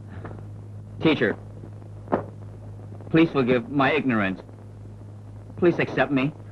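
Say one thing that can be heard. A young man answers in short bursts.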